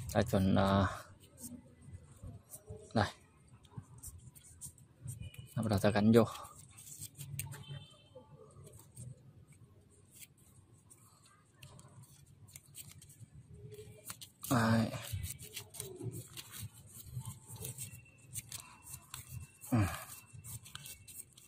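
Plastic thread tape crinkles softly as it is wound onto a pipe fitting.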